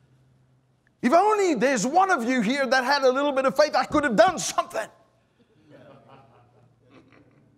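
A middle-aged man speaks with animation through a microphone in a large room.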